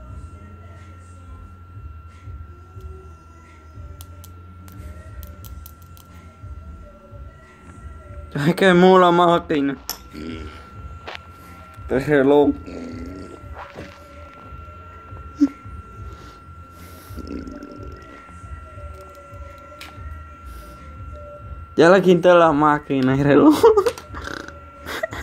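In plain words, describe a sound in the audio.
Small plastic and metal parts click and tap together in the hands.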